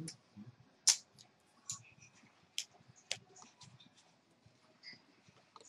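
Poker chips click and clatter as they are stacked and handled.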